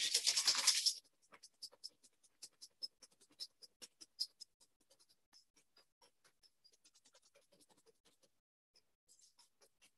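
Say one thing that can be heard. A whisk clinks against a metal bowl.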